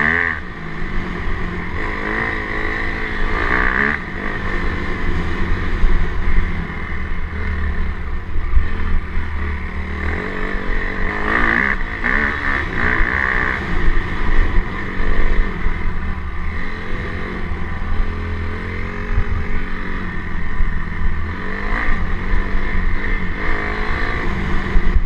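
A motorcycle engine revs and roars steadily while riding.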